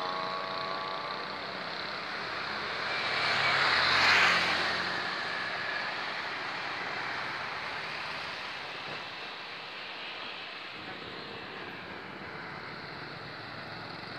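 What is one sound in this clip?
Wind blows steadily outdoors, with a louder gust.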